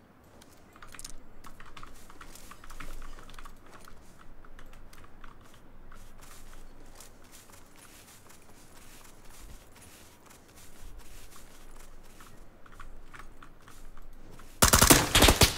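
Footsteps crunch quickly over dry ground.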